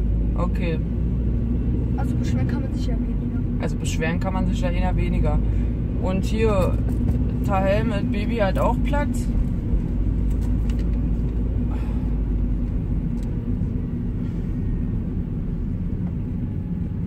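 A car engine hums low and steady inside the car.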